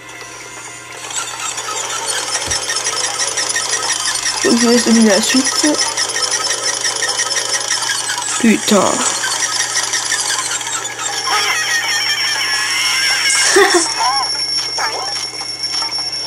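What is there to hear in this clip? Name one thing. Cheerful video game music plays through a small handheld speaker.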